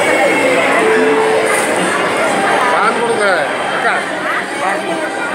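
A crowd of men and women chatters loudly nearby, echoing in a large hall.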